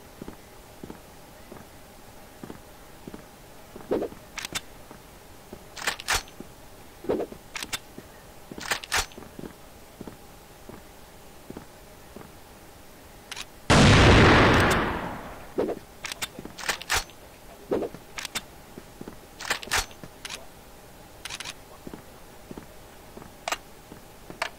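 Footsteps tap on stone at a steady pace.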